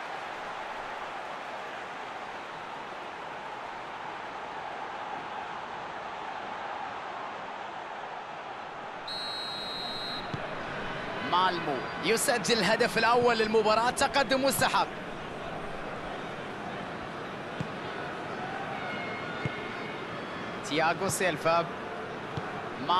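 A large stadium crowd roars steadily in the distance.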